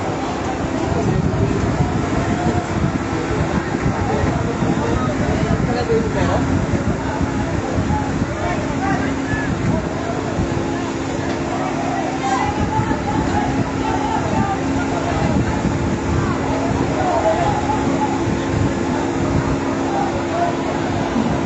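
A crowd of men and women shout excitedly in the distance.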